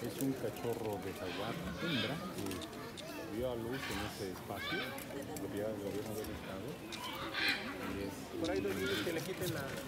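Several adults murmur and talk quietly in the background.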